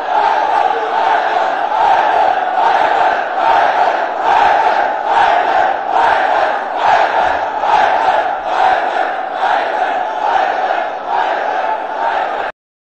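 A crowd of men beat their chests in a steady rhythm.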